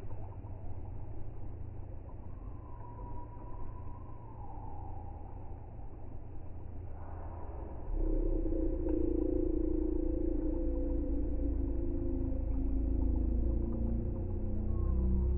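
Water laps and splashes gently around children in a pool.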